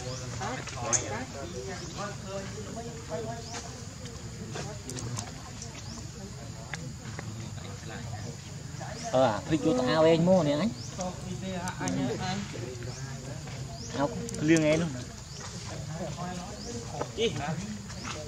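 A baby monkey squeals and cries up close.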